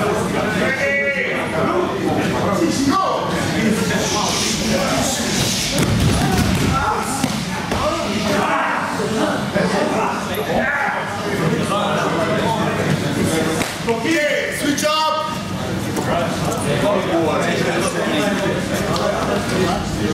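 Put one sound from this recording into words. Many men talk and shout at once in an echoing hall.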